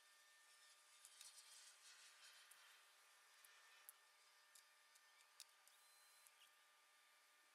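Coiled wire rustles and clicks as it is handled close by.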